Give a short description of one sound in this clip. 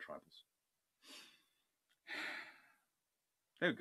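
A man breathes out heavily through a microphone.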